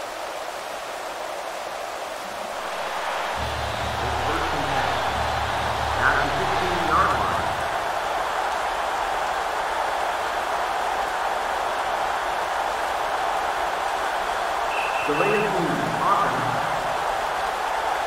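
A stadium crowd murmurs steadily in a large open space.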